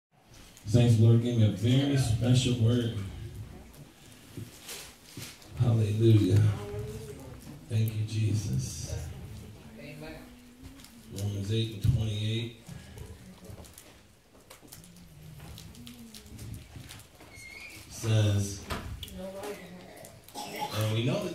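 A man speaks with feeling into a microphone over loudspeakers, in an echoing room.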